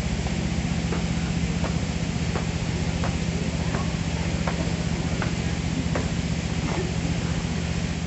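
A person marches with firm, evenly spaced stomping steps on gravel.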